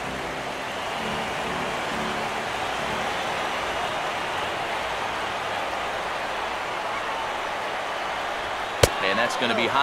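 A crowd murmurs steadily in a large stadium.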